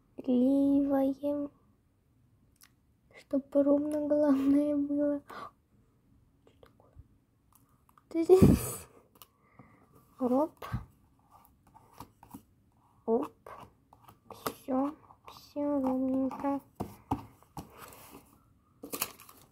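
A card rustles and scrapes against paper.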